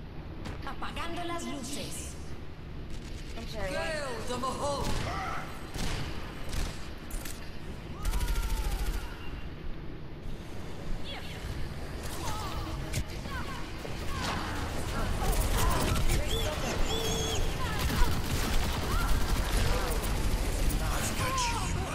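Explosions boom and thud.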